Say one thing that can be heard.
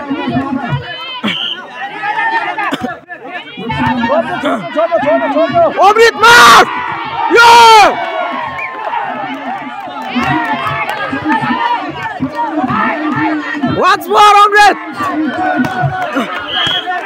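A crowd of young men shouts and cheers loudly outdoors.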